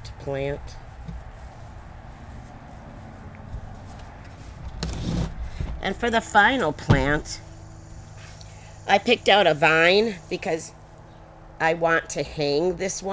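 An elderly woman talks calmly and clearly, close to a microphone.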